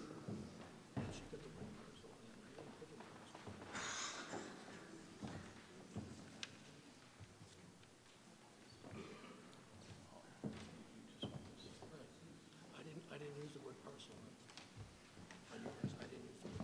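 A crowd of adults murmurs and chatters in a large echoing hall.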